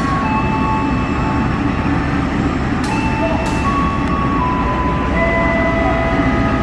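Steel wheels squeal and screech on the rails.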